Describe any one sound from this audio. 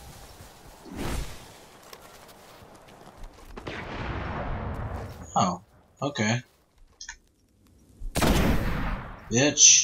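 A sniper rifle fires loud shots.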